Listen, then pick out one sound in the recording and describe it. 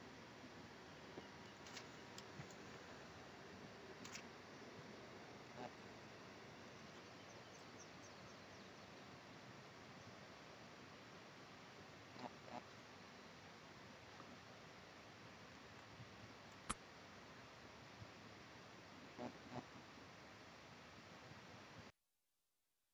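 Small clicks and rustles come from hands handling gear close by.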